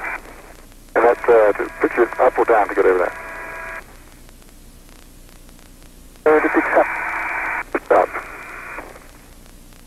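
A man speaks calmly over a crackly radio link.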